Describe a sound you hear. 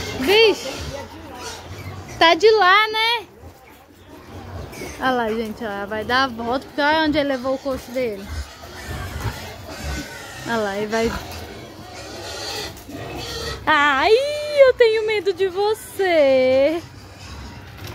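A pig squeals loudly in short, wavering bursts.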